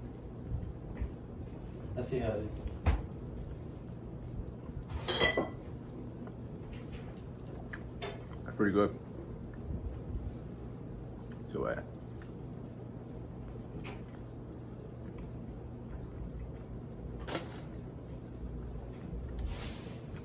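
A young man chews food noisily with his mouth close to a microphone.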